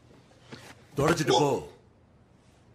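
A man cries out in pain nearby.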